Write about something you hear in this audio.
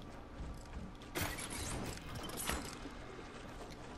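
Gunshots crack in quick bursts in a video game.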